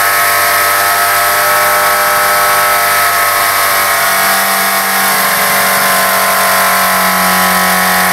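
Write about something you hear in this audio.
Steam hisses from a car engine.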